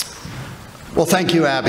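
An older man begins speaking into a microphone.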